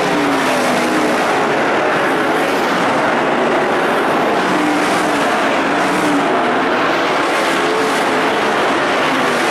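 Engines whine and rise in pitch as cars speed past.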